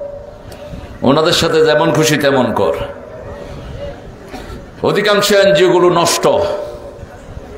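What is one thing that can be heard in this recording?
A man preaches loudly and with fervour into a microphone, heard through loudspeakers.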